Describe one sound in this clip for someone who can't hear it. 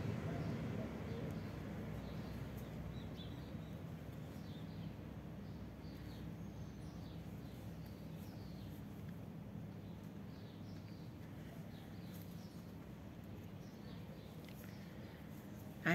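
Yarn rustles softly as a crochet hook pulls it through.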